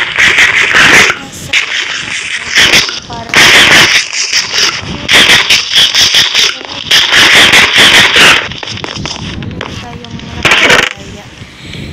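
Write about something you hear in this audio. Stone blocks crunch and crumble as they are broken, over and over.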